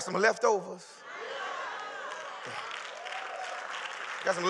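A crowd cheers and calls out.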